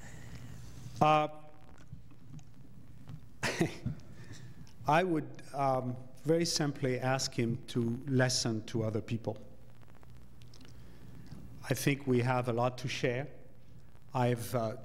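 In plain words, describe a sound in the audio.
An older man speaks calmly into a microphone, heard through a loudspeaker in a large room.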